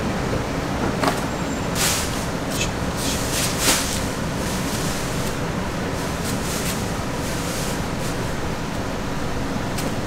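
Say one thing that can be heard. A tool scratches through leek stalks, shredding them.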